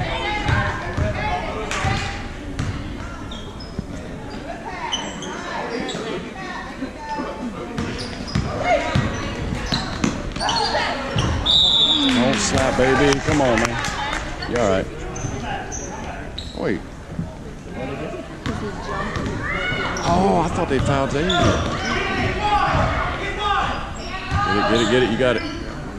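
Spectators shout and cheer in a large echoing gym.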